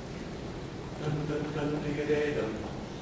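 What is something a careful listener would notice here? A group of young men and women sings together in harmony, heard from a distance in a large hall.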